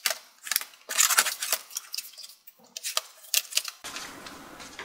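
A plastic laptop case clatters and knocks as it is handled on a table.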